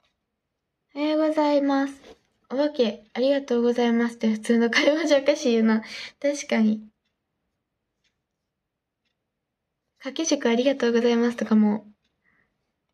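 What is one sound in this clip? A girl speaks close to a microphone, with animation.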